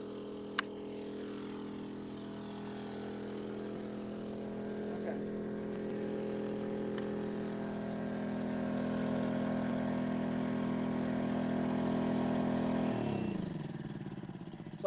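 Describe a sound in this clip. A portable power unit hums steadily, then winds down and falls silent.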